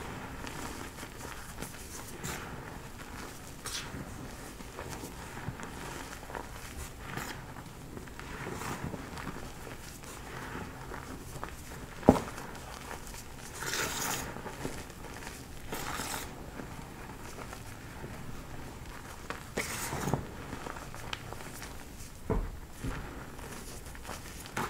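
Hands squeeze and crumble soft powder with soft crunching and rustling.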